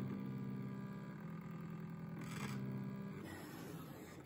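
A cutting machine hums and whirs steadily.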